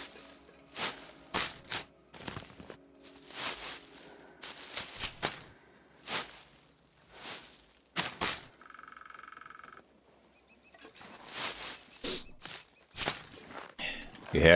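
Plant stalks rustle and snap as they are pulled up, again and again.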